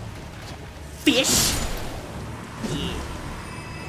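A blade swishes and strikes with a heavy impact.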